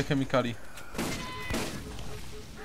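A gun fires a burst of rapid shots.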